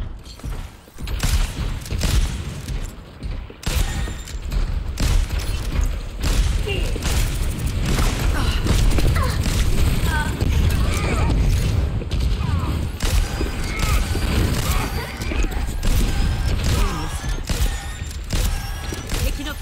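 Rapid gunfire bursts out in quick volleys.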